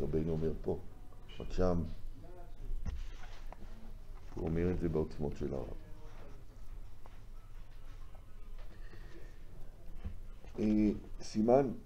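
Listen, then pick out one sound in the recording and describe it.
An elderly man speaks calmly and reads aloud close to a microphone, with pauses.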